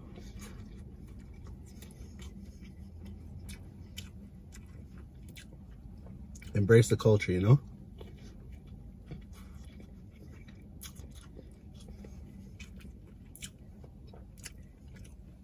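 Fingers rustle and pick through food in a bowl.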